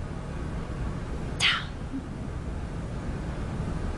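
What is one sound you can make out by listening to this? A young girl speaks calmly nearby.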